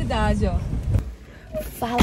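A woman speaks close up.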